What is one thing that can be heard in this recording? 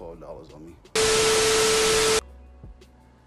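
Loud static hisses with a steady beeping tone.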